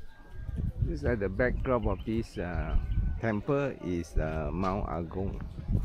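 Women chat nearby outdoors.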